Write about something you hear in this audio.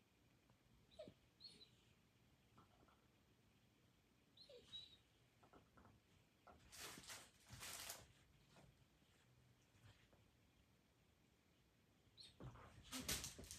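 A dog rustles and drags a plush toy across a rug.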